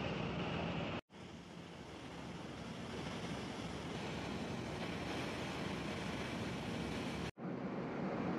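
Water gushes down and splashes into the sea.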